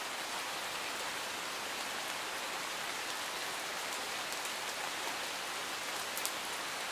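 A stream rushes steadily over rocks nearby.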